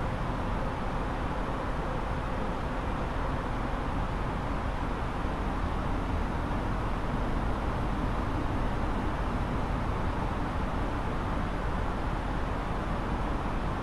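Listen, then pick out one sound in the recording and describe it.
Jet engines roar steadily with a constant rushing wind noise.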